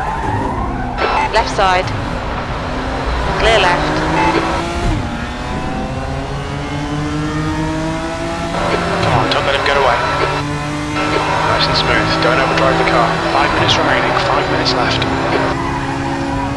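Tyres squeal through corners.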